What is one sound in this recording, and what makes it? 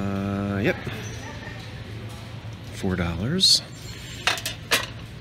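A metal plate clinks against a shelf.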